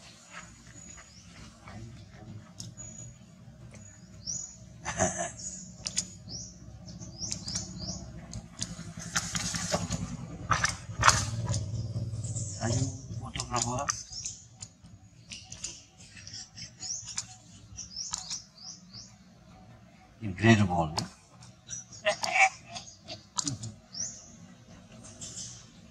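A baby monkey chews and munches on food.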